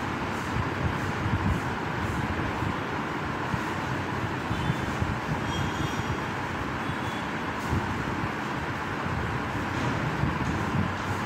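Chalk scrapes and taps on a blackboard.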